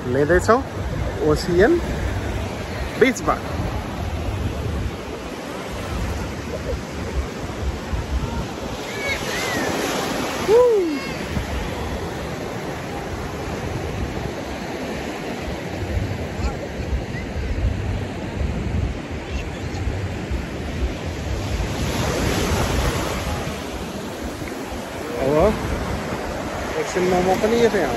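Waves break and wash onto the shore steadily.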